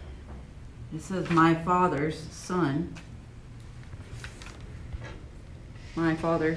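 Paper rustles as a woman handles it.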